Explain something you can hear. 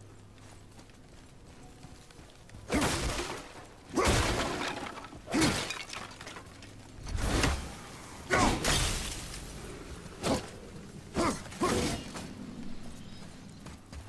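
Heavy footsteps run over grass and earth.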